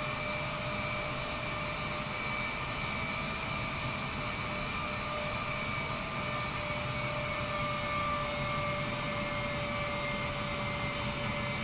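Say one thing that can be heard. A jet engine whines steadily as an airliner taxis.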